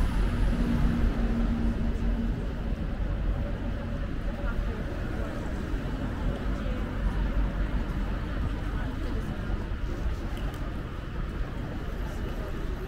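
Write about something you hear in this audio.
Footsteps tap on a pavement.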